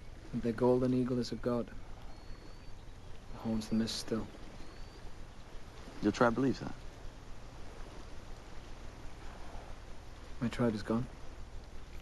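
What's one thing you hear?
A young man speaks quietly and calmly nearby, in short phrases with pauses.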